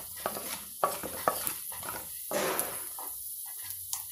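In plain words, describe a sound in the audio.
A wooden spatula scrapes against a metal pan.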